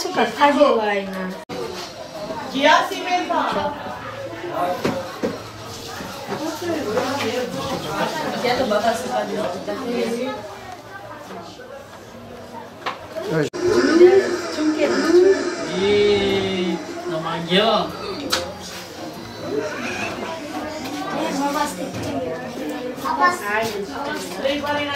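A woman and a man talk nearby with animation.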